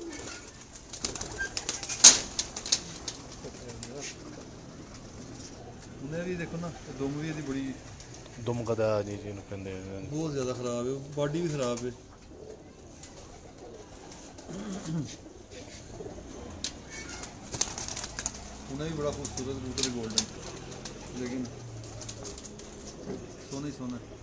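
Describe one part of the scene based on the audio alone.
A pigeon's wings flap and rustle in a man's hands.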